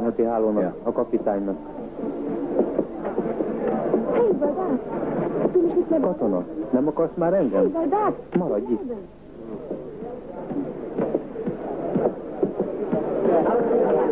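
Men talk with animation at close range.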